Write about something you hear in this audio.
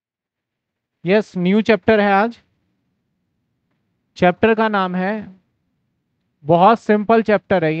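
A man talks calmly into a headset microphone, in short phrases with pauses.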